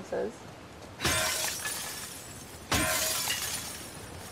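Glass shatters loudly, twice.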